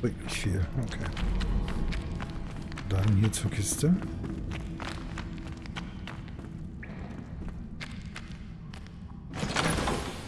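Footsteps scuff on dirt ground.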